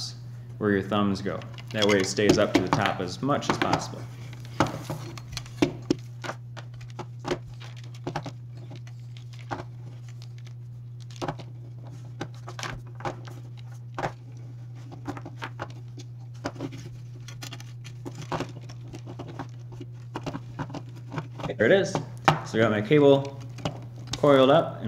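Small plastic parts click and rattle as they are fitted together.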